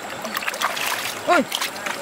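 Hands splash in shallow water.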